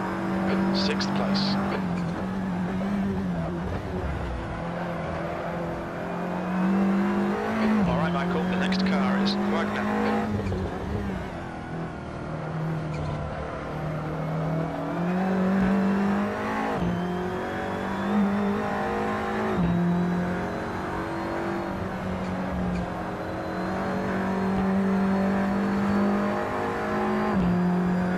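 A racing car engine roars steadily, rising in pitch and dropping sharply with each gear change.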